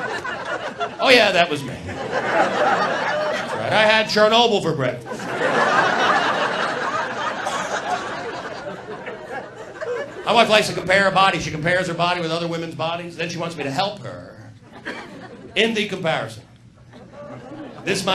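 A middle-aged man speaks with animation into a microphone, amplified through loudspeakers.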